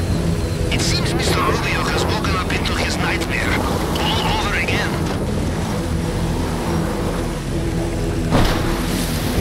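A motorbike engine revs and roars.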